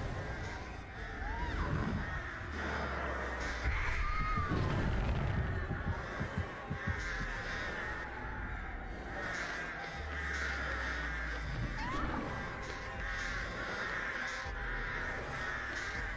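Heavy footsteps thud steadily on dirt.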